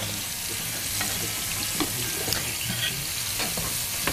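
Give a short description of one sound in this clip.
Dishes clink softly on a counter.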